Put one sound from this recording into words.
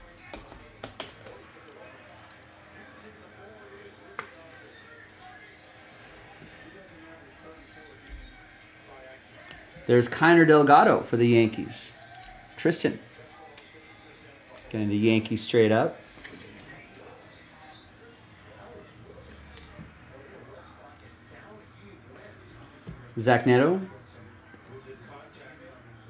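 Cards and plastic wrappers rustle and click in hands.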